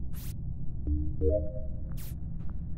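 A short electronic chime rings out as a task finishes.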